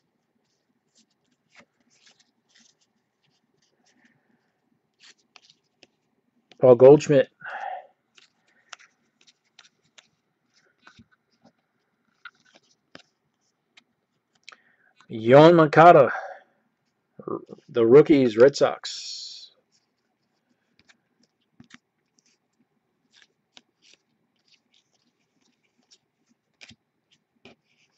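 Trading cards flick and rustle softly as they are sorted by hand.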